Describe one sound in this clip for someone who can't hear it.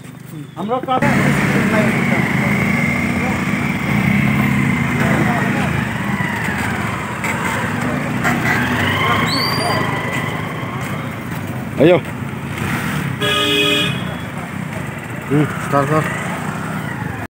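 A motorcycle engine idles and revs nearby.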